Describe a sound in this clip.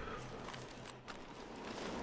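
Boots tramp on rubble.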